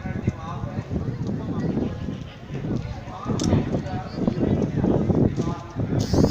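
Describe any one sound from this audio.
A crowd of people chatter outdoors at a distance.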